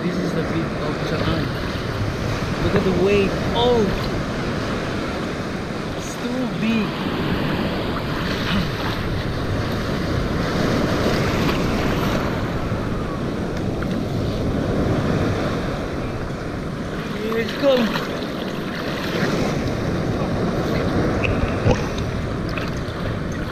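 A young man speaks close by, talking casually.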